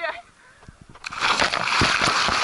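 A young man splashes into the water.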